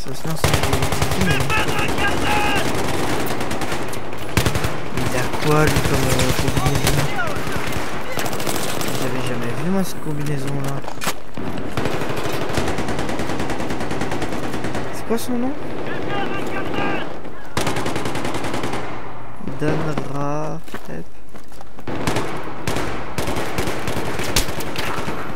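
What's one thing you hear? Gunfire cracks in short, rapid bursts.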